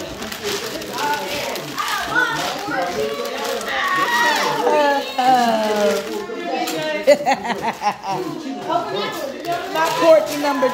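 Wrapping paper rustles and tears.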